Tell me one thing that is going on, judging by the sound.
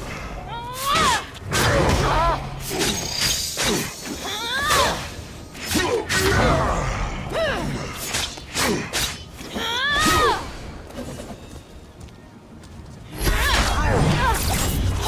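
A blade swishes through the air in quick slashes.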